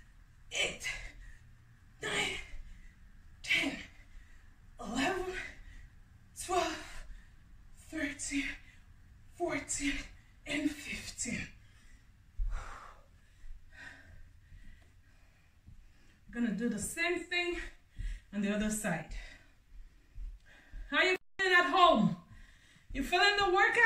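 A young woman counts aloud with effort, close by, in short bursts.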